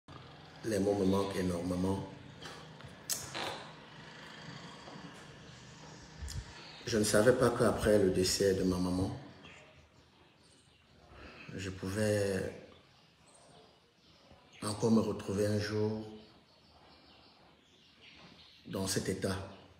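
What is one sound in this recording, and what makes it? A man speaks calmly and closely, in short bursts with pauses.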